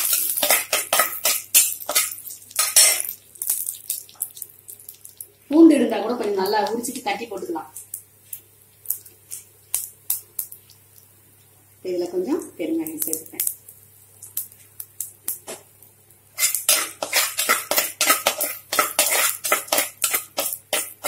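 Spices sizzle and crackle in hot oil.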